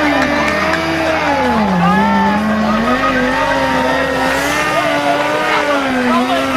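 Motorcycle engines rev loudly, rising and falling in pitch.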